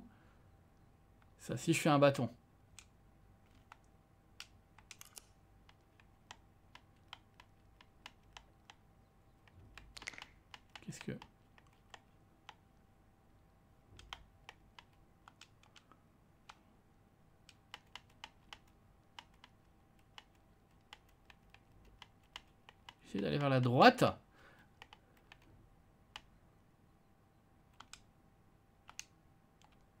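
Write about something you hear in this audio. Soft clicks tick now and then.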